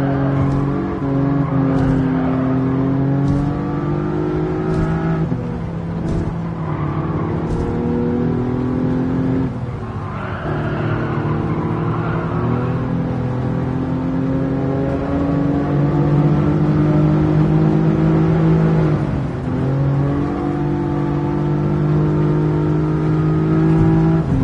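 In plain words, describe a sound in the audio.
A racing car engine roars steadily at high revs, dropping briefly with each gear change.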